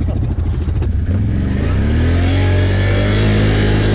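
An all-terrain vehicle engine revs up.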